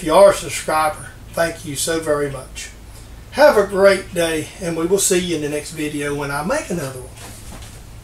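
An older man talks calmly and close by.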